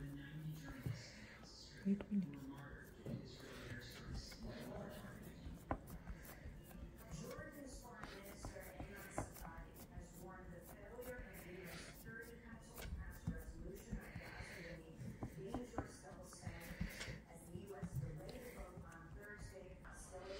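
Hands press and pat soft dough on a wooden board.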